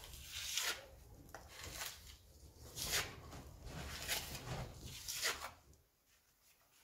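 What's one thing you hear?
A trowel scrapes across a plaster wall in repeated strokes.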